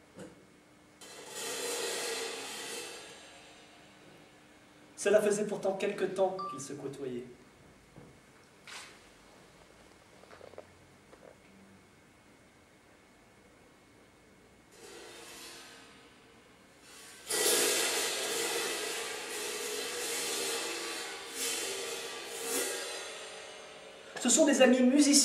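A cymbal rings out with a shimmering wash and slowly fades.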